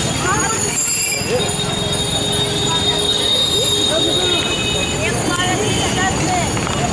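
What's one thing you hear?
A crowd of people talk and shout loudly nearby.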